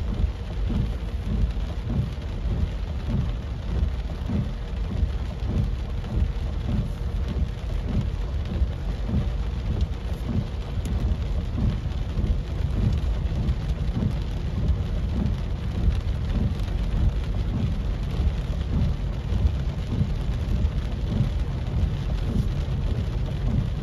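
Rain patters steadily on a car's windshield.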